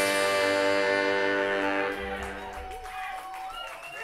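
A saxophone plays a long, loud held note that fades out.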